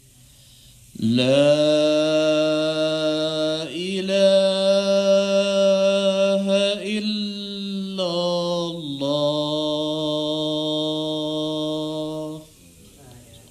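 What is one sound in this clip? A man chants in a long, melodic voice through a microphone, echoing in a large hall.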